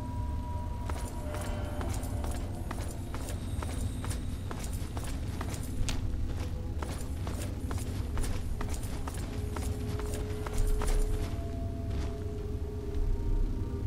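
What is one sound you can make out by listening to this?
Footsteps clatter on a hard metal floor in an echoing corridor.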